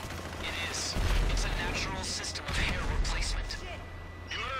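A gun fires loud bursts of shots in a large echoing hall.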